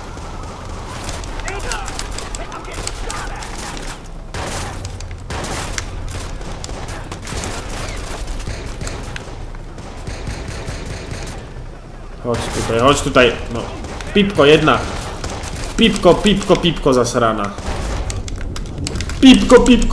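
Pistol shots crack in an echoing space.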